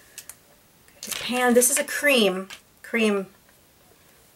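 A woman speaks calmly and close to the microphone.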